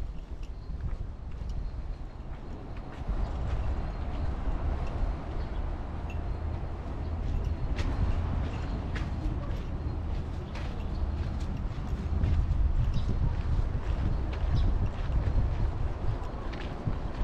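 Wind blows steadily outdoors, rustling the trees.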